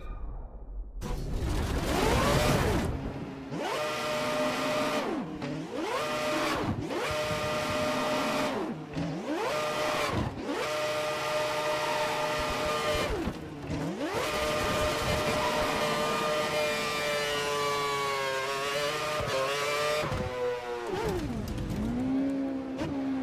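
A racing car engine screams, rising and falling in pitch as it shifts gears.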